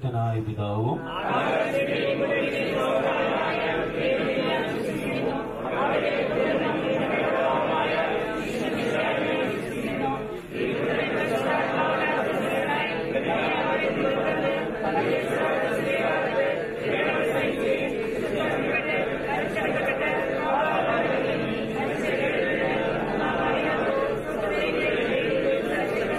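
A group of men and women chant prayers together, outdoors.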